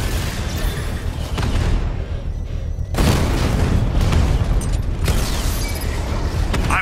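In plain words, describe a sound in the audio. Explosions boom in bursts.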